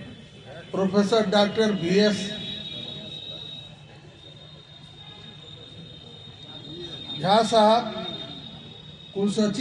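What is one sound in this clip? An elderly man speaks slowly and forcefully into a microphone over a loudspeaker, with pauses between phrases.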